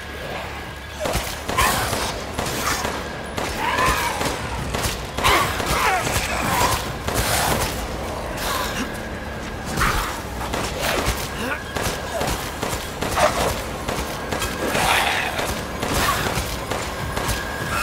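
A pistol fires sharp, loud shots again and again.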